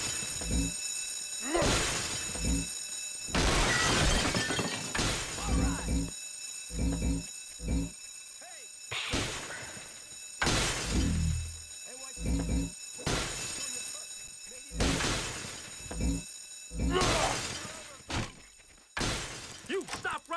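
Glass shatters again and again as display cases are smashed.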